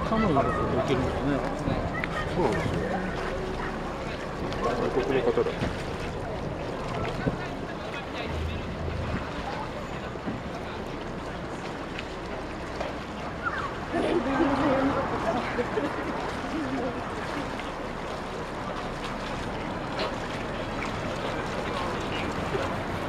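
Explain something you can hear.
Kayak paddles dip and splash softly in the water.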